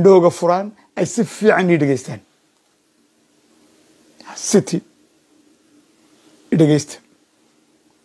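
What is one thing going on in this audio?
A middle-aged man speaks emphatically in short bursts over an online call.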